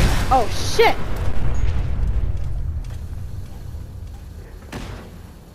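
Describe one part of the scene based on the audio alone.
An explosion booms and rumbles away.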